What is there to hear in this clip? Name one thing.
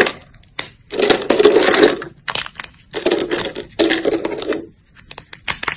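Broken pieces of dry soap rustle and clatter as fingers stir them.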